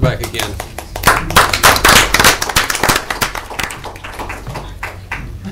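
Applause rises from a seated audience.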